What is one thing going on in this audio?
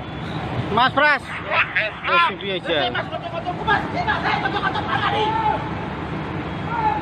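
Men shout in alarm nearby.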